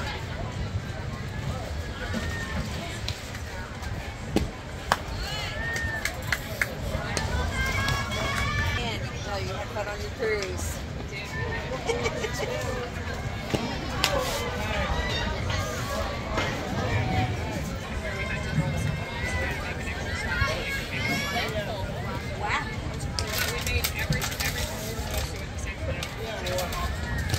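Young women call out and cheer from around the field.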